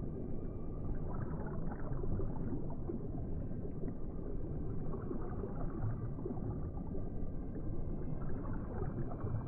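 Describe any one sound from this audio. Water bubbles and gurgles steadily all around.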